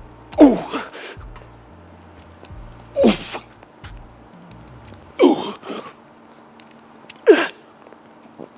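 A man grunts loudly with each strained lift, close by.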